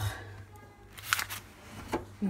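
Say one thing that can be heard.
Foil wrapping crinkles as a hand handles it.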